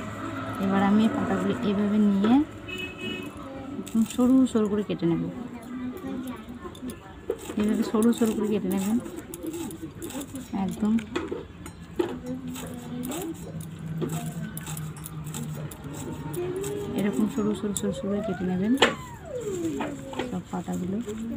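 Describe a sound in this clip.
Leaves rustle and snap as they are cut against a blade.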